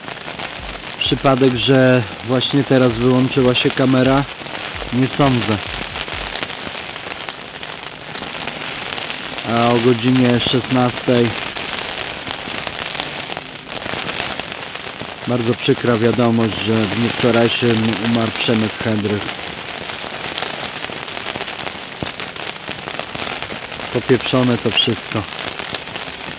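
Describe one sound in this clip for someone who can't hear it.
A man speaks slowly and wearily, close by, in short phrases.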